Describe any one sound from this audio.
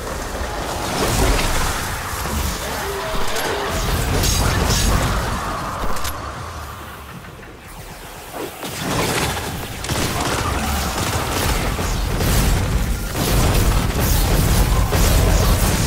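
Energy blasts boom and crackle.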